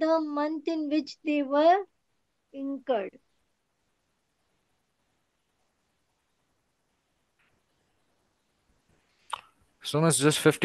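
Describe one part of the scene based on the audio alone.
A woman speaks calmly through a microphone, pausing now and then.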